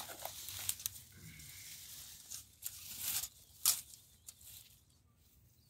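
Grass rustles and crackles as a man pulls at it by hand.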